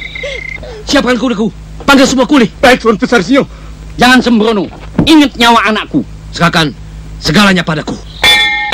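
A man speaks forcefully and sternly.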